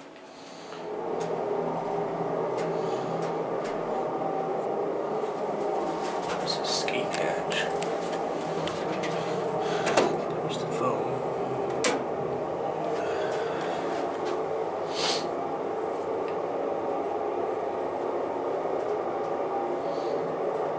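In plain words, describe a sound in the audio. An elevator car hums steadily as it moves.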